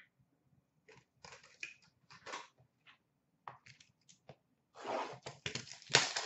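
Cards clatter and scrape in a plastic tub.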